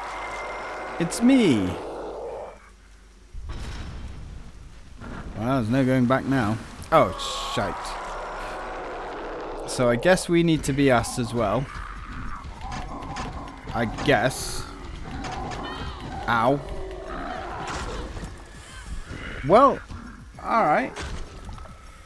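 A monster growls and roars loudly, over and over.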